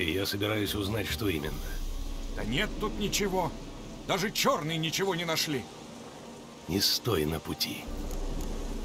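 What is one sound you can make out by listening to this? A man speaks calmly in a low, gravelly voice.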